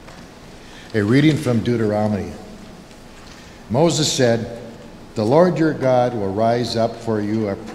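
A man speaks calmly through a microphone in a large, echoing hall.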